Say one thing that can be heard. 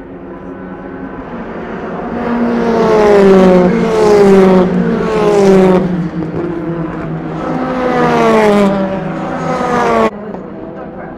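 A racing car engine roars past at high speed, shifting up through the gears.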